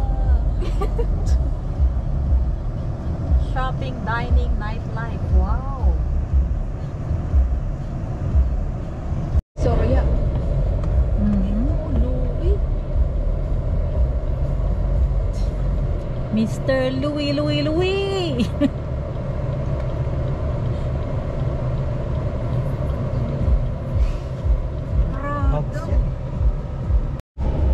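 A car engine rumbles low and steadily while driving.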